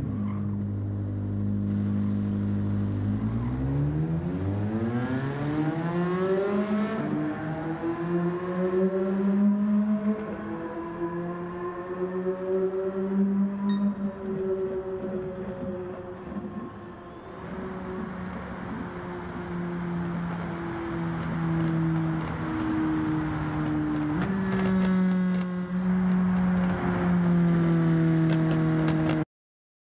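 A race car engine roars, revving higher as the car speeds up.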